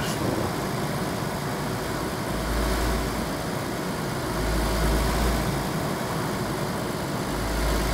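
A small car engine hums steadily as the car drives along.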